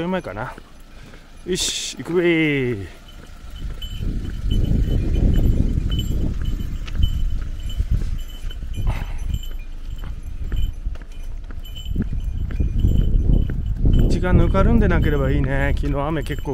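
Footsteps tread on asphalt.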